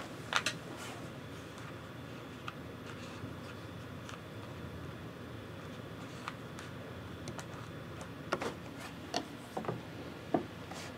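Small plastic game pieces click and clack on a tabletop.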